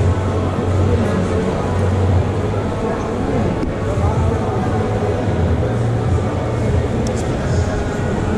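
A knife slices through roast meat.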